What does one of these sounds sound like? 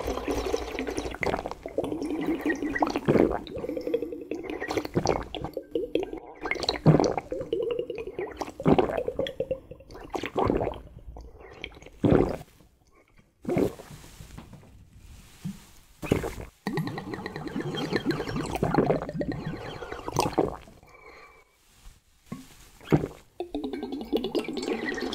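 A man slurps liquid loudly from a bottle up close.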